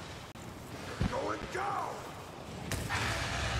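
A huge beast roars.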